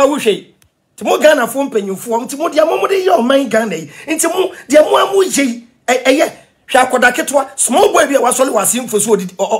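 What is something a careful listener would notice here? A man speaks with animation and emphasis, close to a microphone.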